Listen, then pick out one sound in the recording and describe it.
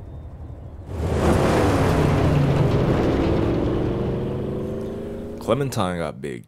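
A car engine roars and pulls away.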